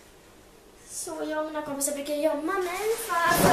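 A girl speaks clearly and with animation close by.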